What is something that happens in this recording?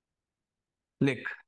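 A young man speaks up briefly and clearly, close to a microphone.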